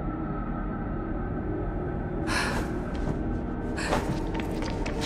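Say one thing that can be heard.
Footsteps crunch on loose rubble.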